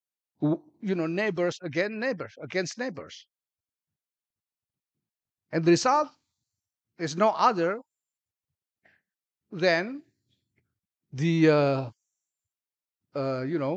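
A middle-aged man gives a speech through a microphone, speaking in short bursts with pauses.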